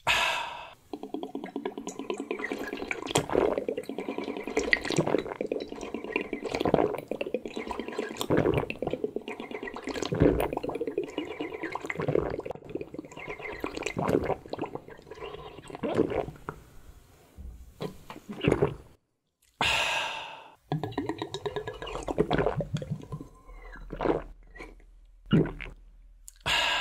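A young man blows into a drink, bubbling and gurgling close by.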